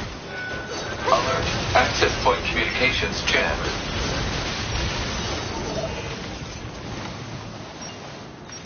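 Metal blades clash and clang.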